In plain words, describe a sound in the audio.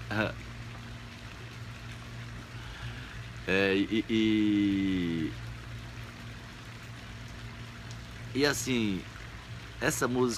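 An elderly man speaks close to the microphone in short, drawn-out phrases with long pauses.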